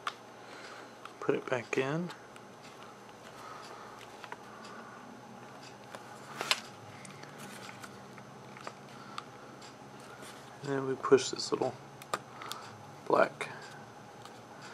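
Small plastic and metal parts click and tap as they are handled up close.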